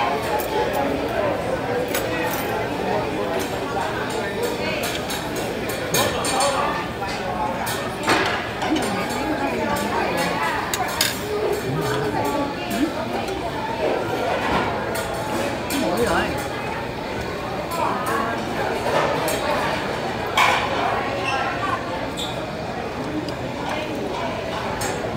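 Spoons and utensils clink against bowls and plates.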